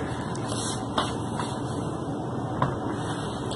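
A laptop knocks softly as it is set down on a table.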